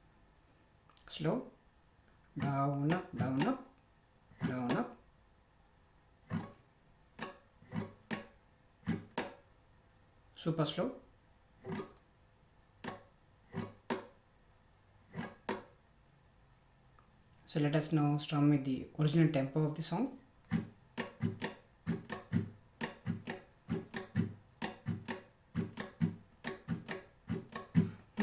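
A man plucks single notes and strums chords on an acoustic guitar, close by.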